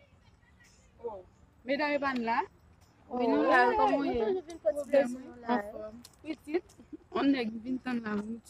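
Women chat and laugh close by.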